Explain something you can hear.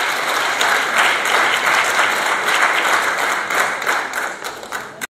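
An audience applauds in a room with an echo, and the applause fades away.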